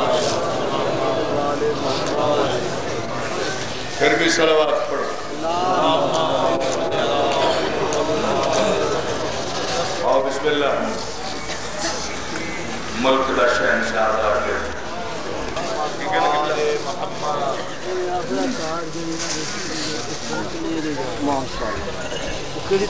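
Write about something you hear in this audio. A middle-aged man recites with passion into a microphone, heard through a loudspeaker.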